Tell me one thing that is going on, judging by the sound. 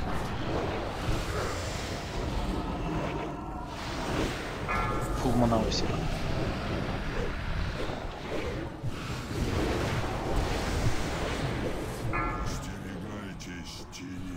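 Magic spells crackle and weapons clash in a busy fight.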